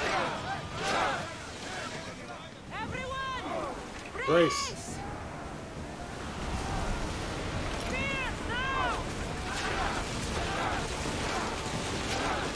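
Fire roars on a burning ship.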